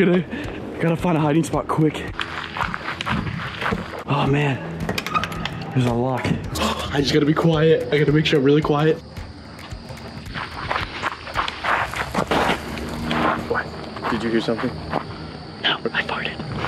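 A young man talks excitedly close by.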